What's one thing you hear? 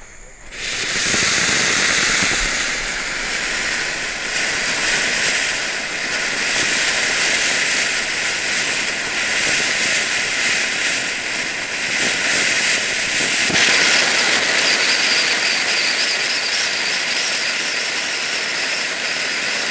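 A firework fountain hisses and sprays sparks loudly and steadily.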